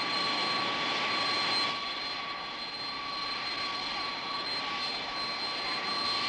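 Jet engines whine and roar steadily as an airliner taxis close by.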